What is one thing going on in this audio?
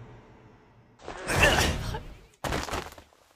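A man screams in anguish.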